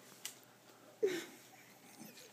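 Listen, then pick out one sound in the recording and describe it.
A middle-aged woman laughs briefly nearby.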